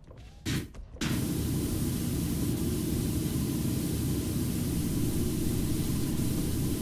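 A pressure washer sprays water in a loud, steady hiss.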